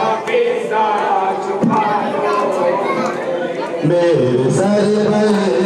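A young man sings a lament into a microphone, heard through loudspeakers.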